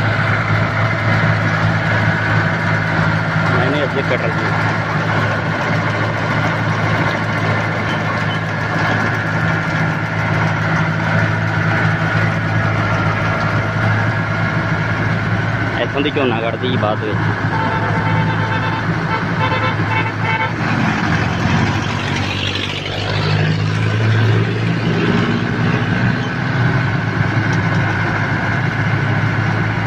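A large diesel engine idles with a steady, deep hum close by.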